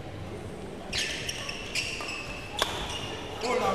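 A racket smacks a shuttlecock several times.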